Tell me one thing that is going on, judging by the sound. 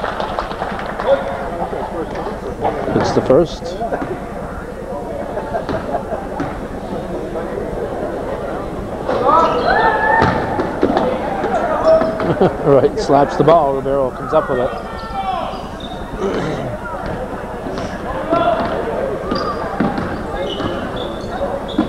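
A crowd murmurs throughout an echoing gym.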